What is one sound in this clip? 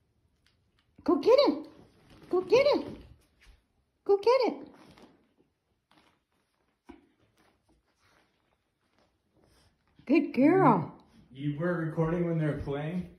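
Small dogs yap and bark sharply during play.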